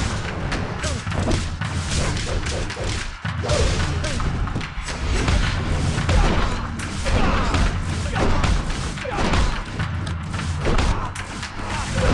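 Punches and kicks land with sharp, rapid thuds.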